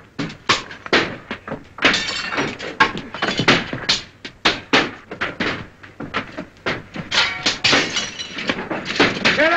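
Sharp knocks and clatters ring out repeatedly.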